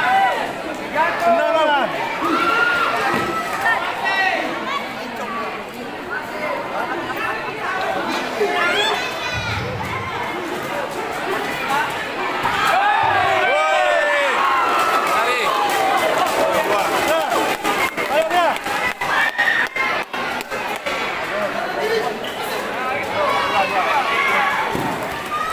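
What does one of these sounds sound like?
A crowd of spectators shouts and cheers throughout, echoing in a large hall.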